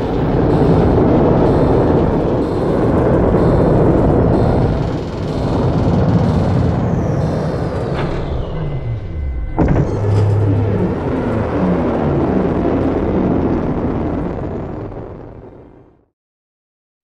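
A large spaceship rumbles deeply as it drifts past.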